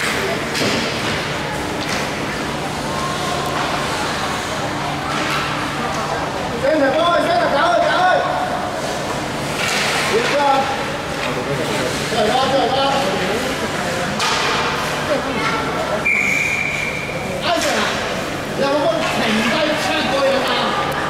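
Children shout and call out in a large echoing rink.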